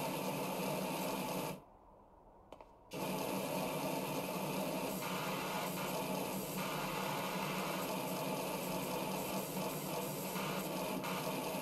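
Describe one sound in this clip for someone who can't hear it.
A pressure washer sprays a steady, hissing jet of water against metal.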